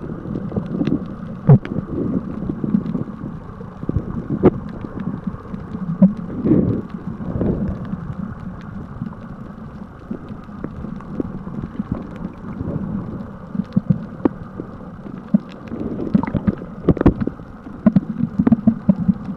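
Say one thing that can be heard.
Water rumbles and bubbles, heard muffled from underwater.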